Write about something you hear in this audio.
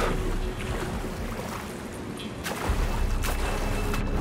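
Water sloshes and laps steadily.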